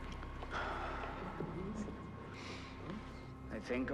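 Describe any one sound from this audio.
A man sighs.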